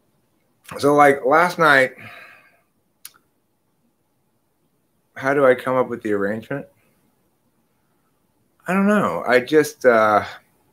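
A middle-aged man speaks with animation close to a microphone, pausing between phrases.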